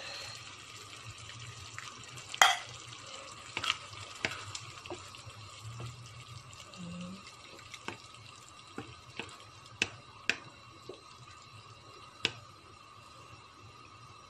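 A wooden spoon stirs thick tomato sauce in a frying pan.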